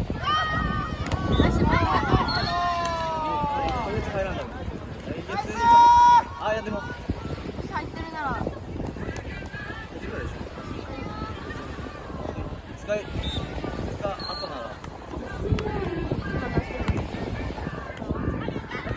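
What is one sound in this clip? Young people shout and call out to each other outdoors.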